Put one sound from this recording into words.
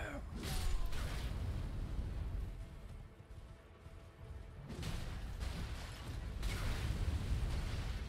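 Fire roars and crackles in bursts.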